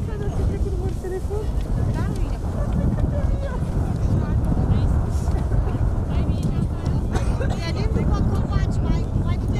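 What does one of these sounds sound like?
Several men and women talk at a distance.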